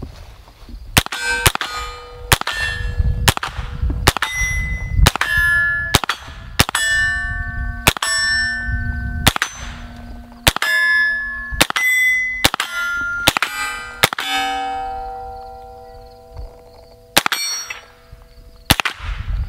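A rifle fires shot after shot, loud and sharp.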